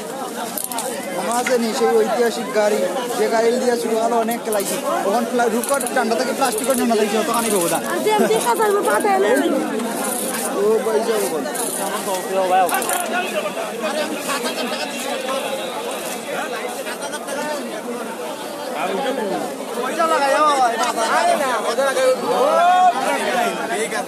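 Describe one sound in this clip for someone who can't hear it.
A crowd of people talks and shouts loudly all around, close by.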